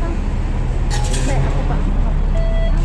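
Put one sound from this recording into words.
A card reader beeps.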